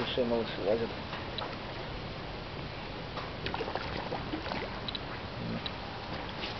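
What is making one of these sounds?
Water laps and ripples gently.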